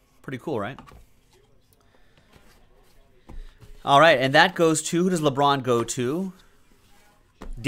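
A cardboard box slides and taps against a table.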